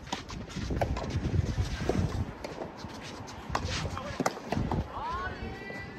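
Tennis balls pop off rackets outdoors.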